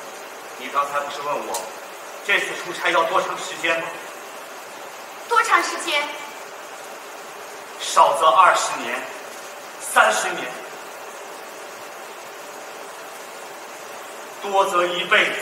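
A young woman speaks clearly from a stage.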